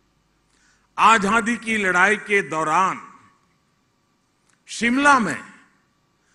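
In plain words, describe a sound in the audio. An elderly man speaks emphatically into a microphone.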